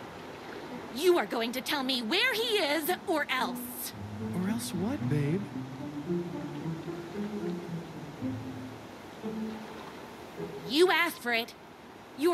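A young woman speaks angrily and threateningly, close by.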